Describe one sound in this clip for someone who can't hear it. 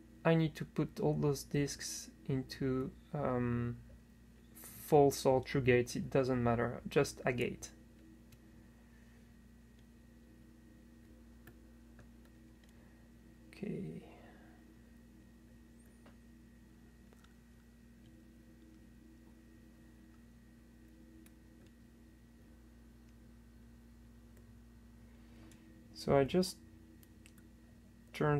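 Metal picks click and scrape softly inside a lock.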